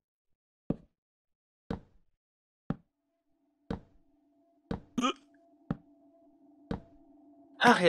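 Wooden blocks knock softly as they are placed, about once a second.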